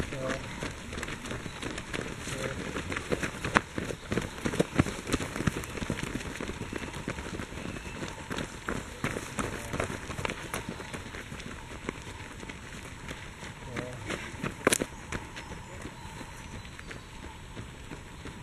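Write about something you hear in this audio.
Footsteps of runners thud and crunch on a dirt path, passing close by.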